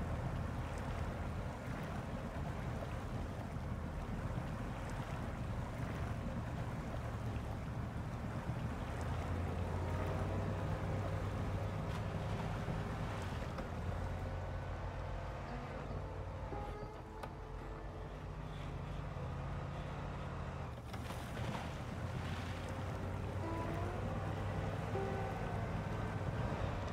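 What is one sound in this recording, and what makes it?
Water churns and splashes around wheels.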